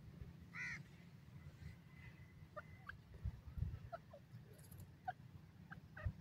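A bird gives short, soft chirps close by.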